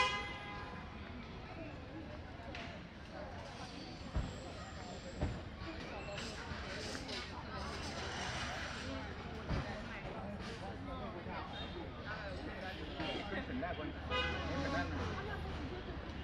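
People chatter quietly in the distance outdoors.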